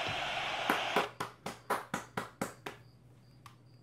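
A man claps his hands quickly several times.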